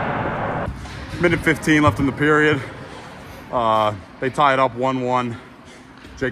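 A young man talks with animation close by, in a large echoing rink.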